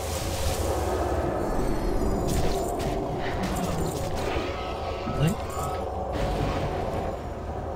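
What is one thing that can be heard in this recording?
Weapons clash and spells burst in a chaotic battle.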